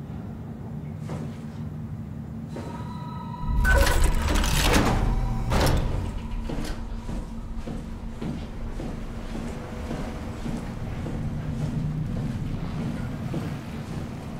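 Machinery hums low and steadily.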